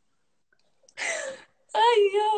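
A young woman laughs tearfully over an online call.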